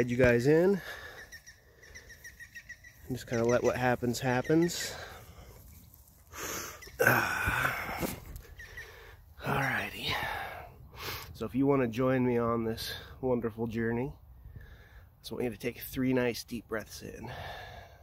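A man talks calmly and close up, pausing now and then.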